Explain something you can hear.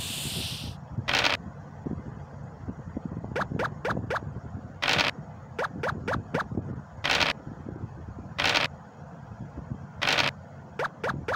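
A game's dice rattle as they roll.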